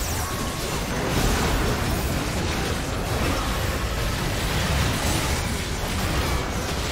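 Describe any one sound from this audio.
Spell effects burst and crackle in a fast game fight.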